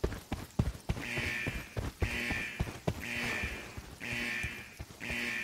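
An alarm beeps repeatedly at a high pitch.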